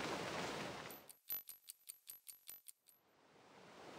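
A clock ticks quickly.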